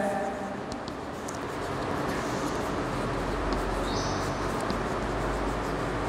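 Chalk scratches and taps on a board.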